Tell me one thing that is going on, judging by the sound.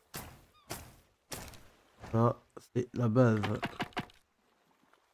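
Dry branches snap and crack.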